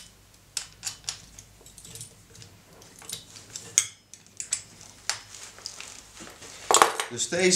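Metal tools click and tap against wood.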